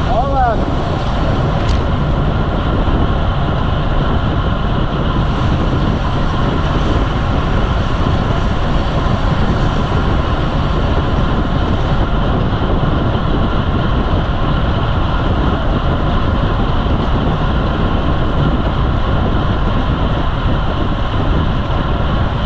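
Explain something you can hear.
Strong wind rushes and buffets steadily, outdoors at speed.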